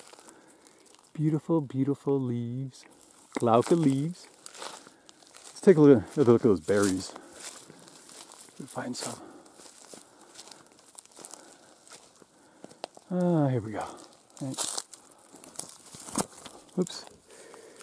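Leaves rustle softly as a hand brushes them.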